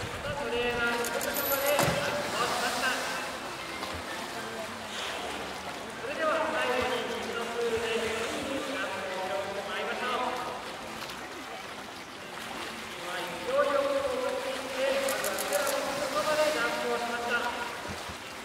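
A large orca leaps and crashes into water with a heavy splash.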